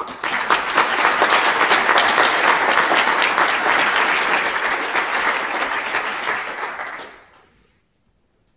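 An audience applauds and then fades out.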